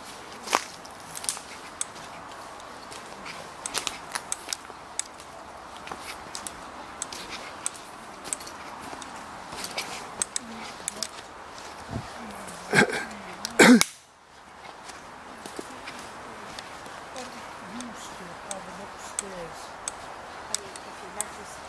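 Footsteps crunch on twigs and dry leaves.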